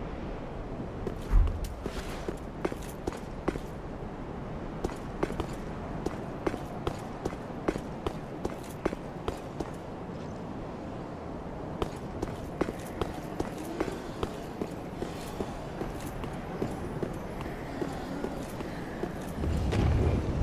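Armoured footsteps clank quickly on stone.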